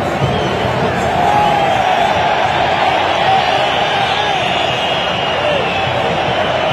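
A large stadium crowd roars and chants loudly all around.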